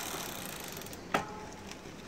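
A hand rubs a bicycle frame with a cloth.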